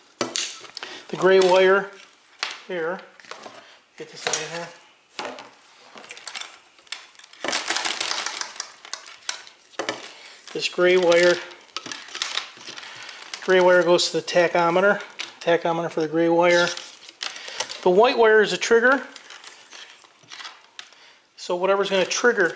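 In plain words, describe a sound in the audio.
Plastic-coated wires rustle and rattle as hands sort through them.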